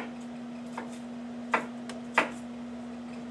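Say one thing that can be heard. A knife chops on a cutting board with sharp knocks.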